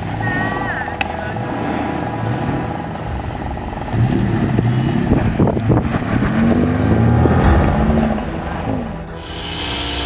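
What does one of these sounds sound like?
A truck engine rumbles and revs loudly.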